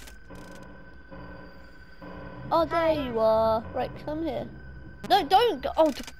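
Static hisses and crackles from a monitor.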